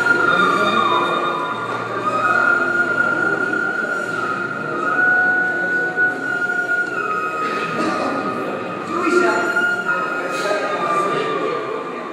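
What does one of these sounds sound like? A young man sings loudly in a large echoing hall.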